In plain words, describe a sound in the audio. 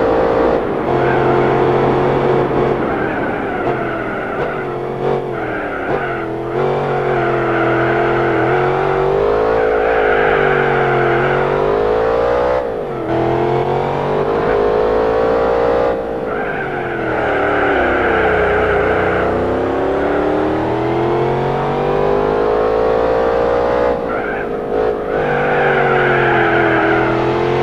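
A supercharged V8 supercar engine revs hard through the gears, with its pitch rising and dropping at each shift.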